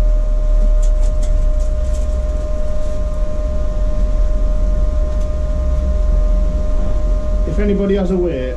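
A metal clamp clicks as gloved hands handle it.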